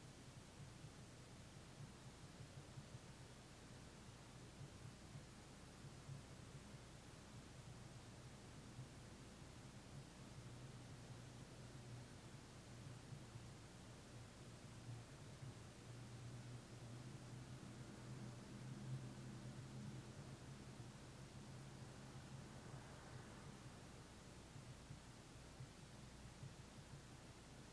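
A man hums a low, steady tone close by.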